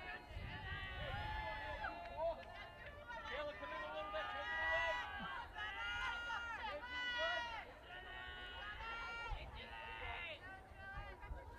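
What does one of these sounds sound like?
A crowd of girls chatters and cheers nearby, outdoors.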